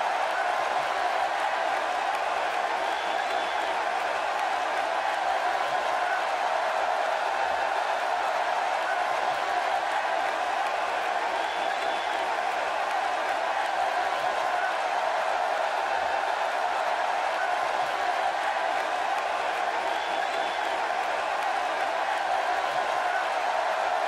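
A crowd cheers and roars steadily.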